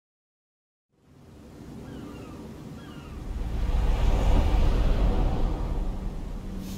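A sports car engine roars as the car accelerates.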